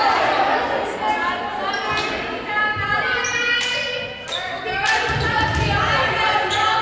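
Young women call out to each other in a large echoing gym.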